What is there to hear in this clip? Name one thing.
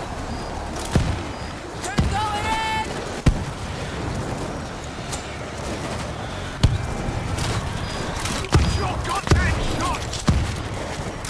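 A crossbow fires bolts with sharp thwacks.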